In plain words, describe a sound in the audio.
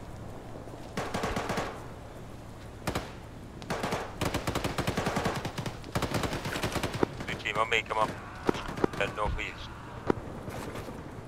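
Rapid gunfire bursts and cracks from a game.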